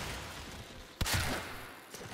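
A bow shot releases with a sudden loud whoosh.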